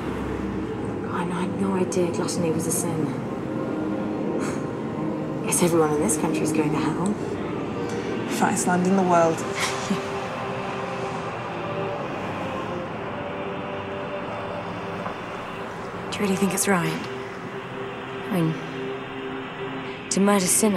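Another young woman speaks softly in reply, close by.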